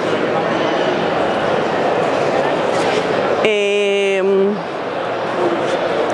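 A crowd of people chatters all around in a large, busy hall.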